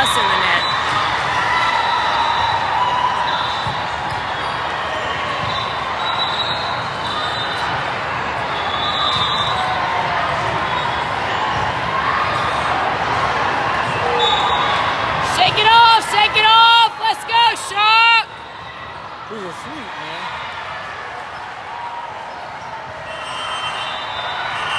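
Young women players call out to each other on the court.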